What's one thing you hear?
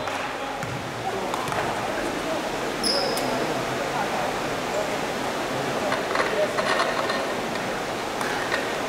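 Spectators chatter nearby in a large echoing hall.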